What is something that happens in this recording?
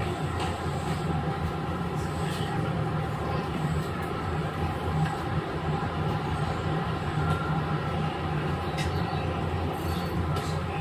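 An electric train hums steadily nearby.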